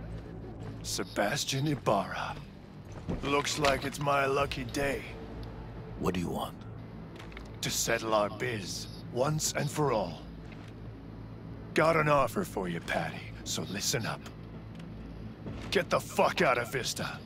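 A man speaks gruffly and menacingly, close by.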